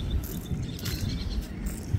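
A paddle splashes in water.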